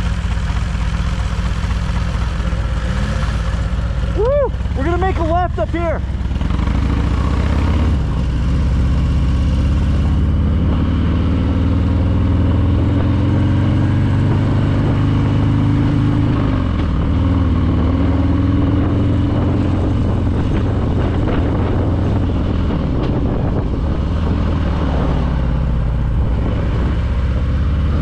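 A motorcycle engine rumbles steadily and revs as it pulls away.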